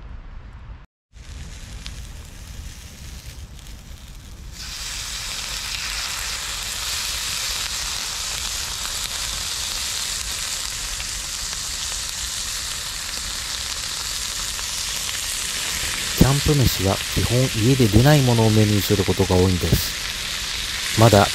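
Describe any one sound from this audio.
A fire crackles and burns.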